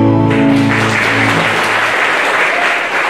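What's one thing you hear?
Music from a band on stage ends with a held chord.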